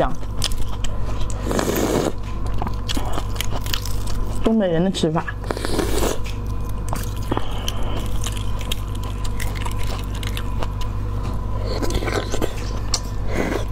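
A young woman chews food with her mouth close to a microphone.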